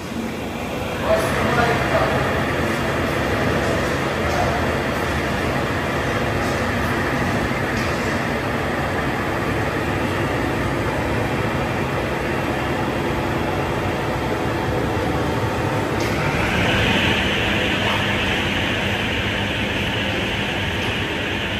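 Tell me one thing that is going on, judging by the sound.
A large machine starts up with a rising hum and then runs with a steady loud whir.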